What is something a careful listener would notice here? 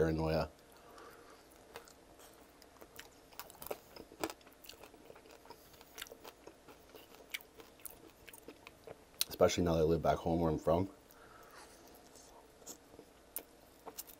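A man chews and smacks on chicken wings close to a microphone.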